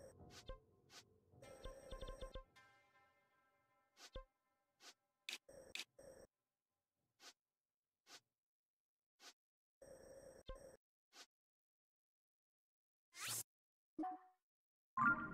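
Short electronic menu blips and clicks sound now and then.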